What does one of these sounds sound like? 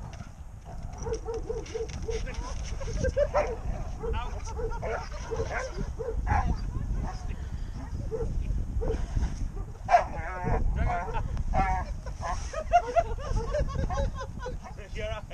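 A dog barks repeatedly and excitedly.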